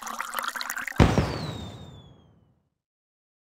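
A loud burst of party poppers bangs and fizzles out.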